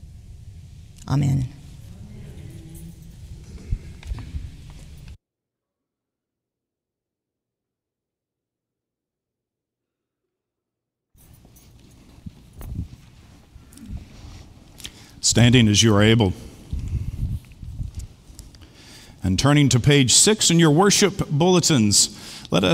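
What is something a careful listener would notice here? An older man reads aloud through a microphone.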